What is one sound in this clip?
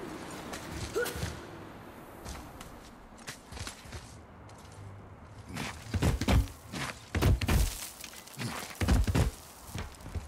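Hands grip and knock against rock while climbing.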